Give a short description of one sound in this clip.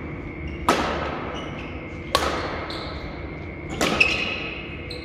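Badminton rackets strike a shuttlecock with sharp pops, echoing in a large hall.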